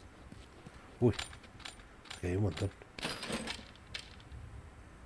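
Metal tools clink and rattle as a toolbox is searched.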